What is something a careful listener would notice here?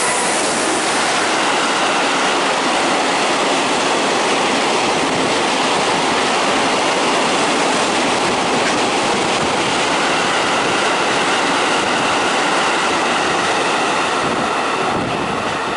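A freight train roars past close by at speed, with a loud steady rush that fades at the end.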